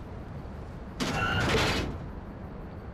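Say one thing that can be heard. A metal ramp drops down with a loud clatter.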